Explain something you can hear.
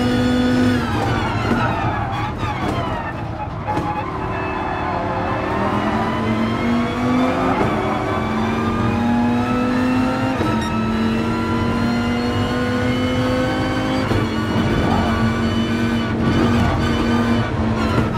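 A racing car engine roars, dropping in pitch as it slows, then rising steadily through gear changes.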